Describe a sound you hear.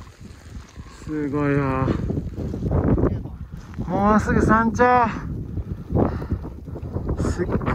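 Wind gusts outdoors and buffets a microphone.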